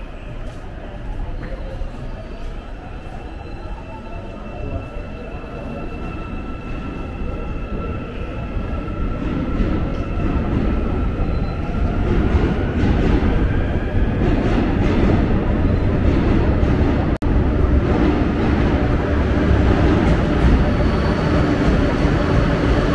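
A train rumbles beside the platform in a large echoing hall, growing louder.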